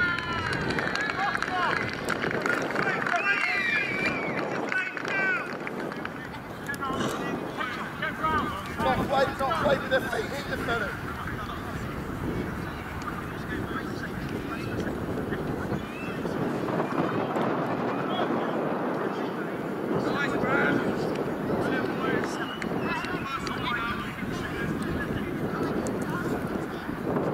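Wind blows over the microphone outdoors.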